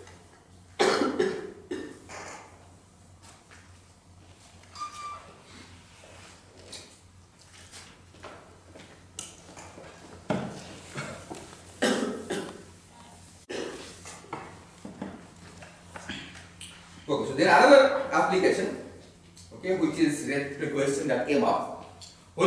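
A man lectures in a large echoing hall.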